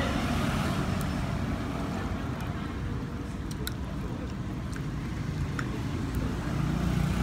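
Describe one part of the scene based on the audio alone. Chopsticks clink lightly against a ceramic bowl.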